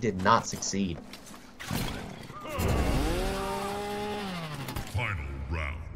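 A chainsaw revs.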